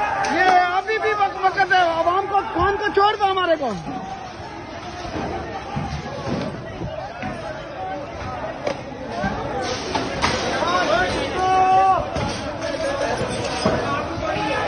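A crowd of men shouts loudly outdoors.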